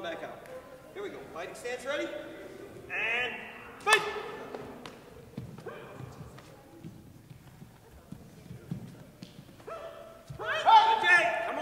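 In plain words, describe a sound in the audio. Young martial artists shout sharply as they spar in a large echoing hall.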